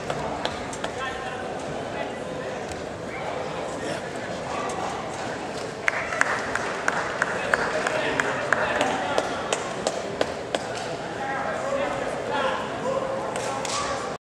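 A crowd chatters and murmurs in a large echoing hall.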